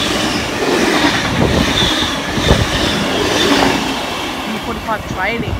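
A train rushes past close by with a loud rumble and roar.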